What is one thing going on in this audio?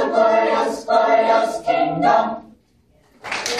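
A choir of young voices sings together in a room with some echo.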